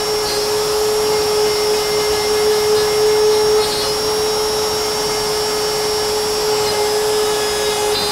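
A power router whines steadily as it cuts into wood.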